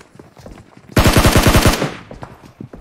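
A rifle fires a loud rapid burst.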